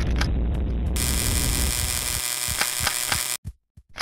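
An energy weapon fires in a video game.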